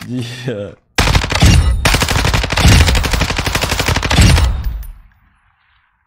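A game rifle fires in rapid bursts.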